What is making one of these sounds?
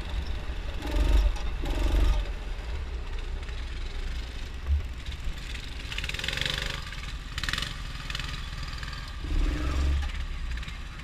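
A small kart engine buzzes and revs steadily close by.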